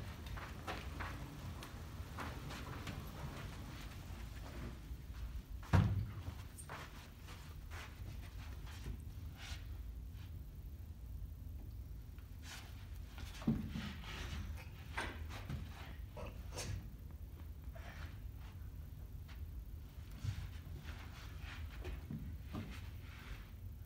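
Piano casters rumble and rattle across a floor.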